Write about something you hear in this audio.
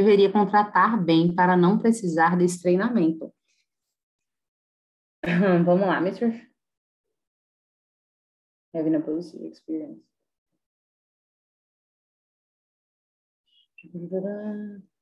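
A young woman speaks calmly through a microphone, with pauses, as on an online call.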